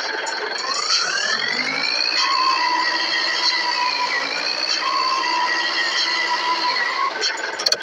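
A car engine hums and revs.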